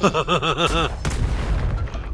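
An explosion bursts with a loud bang.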